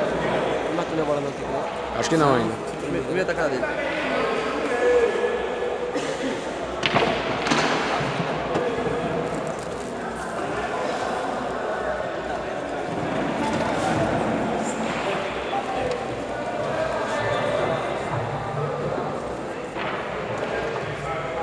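A crowd of men chatters throughout a large echoing hall.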